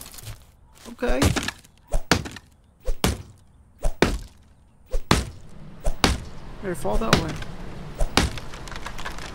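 An axe chops into a tree trunk with sharp thuds.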